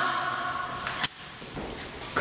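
A body thuds onto a hard floor during a scuffle.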